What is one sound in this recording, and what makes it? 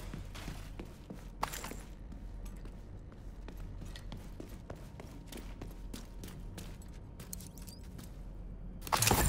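Footsteps tap and scuff across a hard floor.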